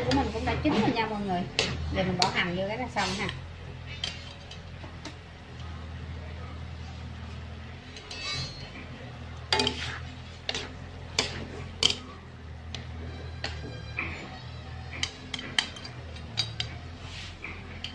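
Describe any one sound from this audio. Utensils scrape and clink against a metal pan.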